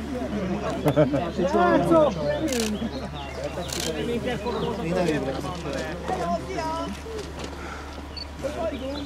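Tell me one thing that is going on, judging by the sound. Several men talk with animation close by, outdoors.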